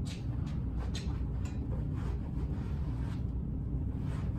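A cloth wipes the seat of a chair.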